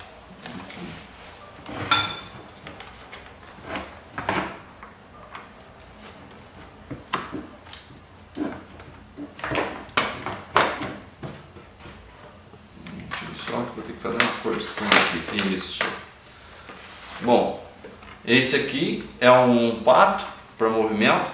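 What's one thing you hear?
Hard plastic parts click and knock together as they are handled.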